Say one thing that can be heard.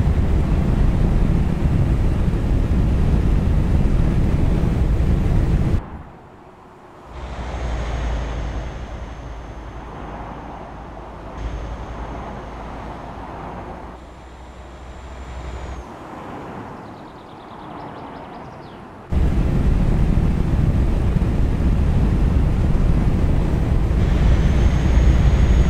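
A truck engine drones loudly and steadily from inside the cab.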